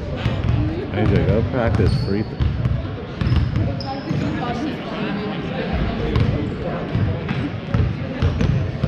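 A crowd of young people chatters in a large echoing gym.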